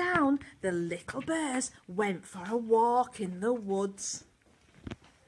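A young girl sings loudly and excitedly nearby.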